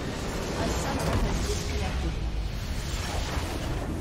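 A large structure explodes with a deep boom.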